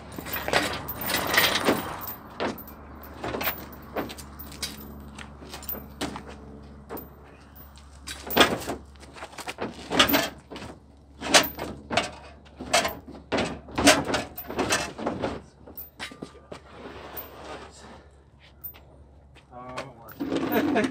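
Heavy metal parts clank and thud against a truck bed.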